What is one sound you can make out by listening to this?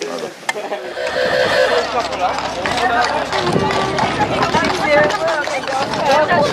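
A horse's hooves clop on the road.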